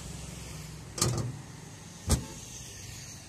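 A car bonnet slams shut with a loud thud.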